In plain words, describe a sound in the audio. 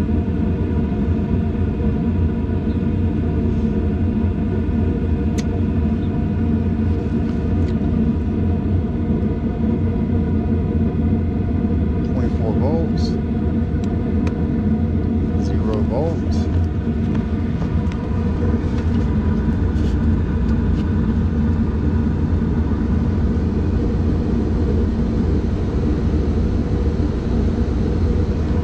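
An air conditioning unit hums steadily close by.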